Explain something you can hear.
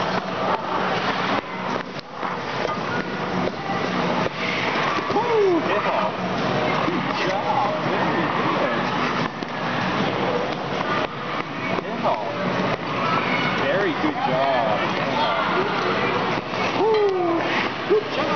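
Skate blades scrape across ice.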